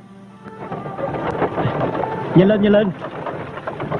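A horse-drawn cart rolls along.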